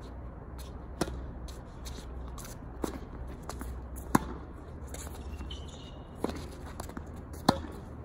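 Tennis balls are struck sharply with rackets, back and forth, outdoors.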